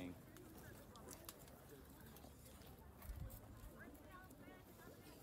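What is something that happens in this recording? Young women chatter and call out at a distance outdoors.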